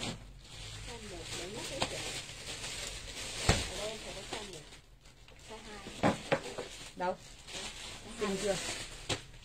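Clothes rustle as they are handled.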